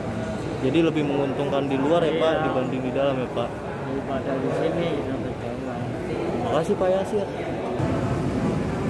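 A middle-aged man speaks calmly, close to the microphone.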